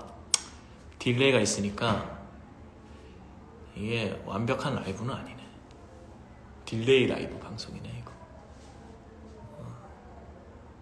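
A young man speaks calmly and close to the microphone, in short bursts with pauses.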